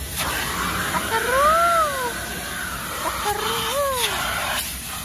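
A dog whines in high, rising and falling cries.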